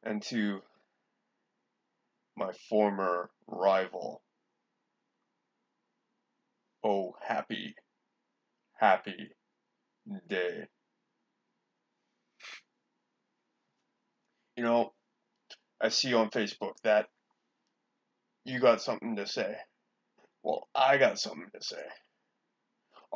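A man speaks close by in short bursts, calmly.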